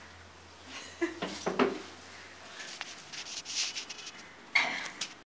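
Women laugh nearby.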